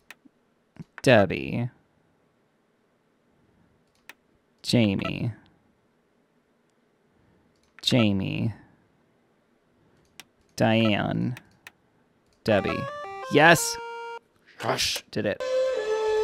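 A young man speaks with animation into a close microphone, in short bursts.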